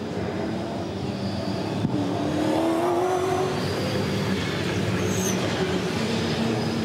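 Racing car engines roar and whine as a pack of cars drives past.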